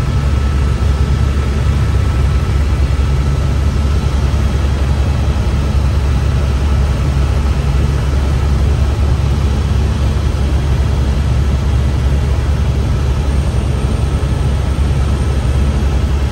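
A helicopter's engine and rotor roar loudly and steadily inside the cabin.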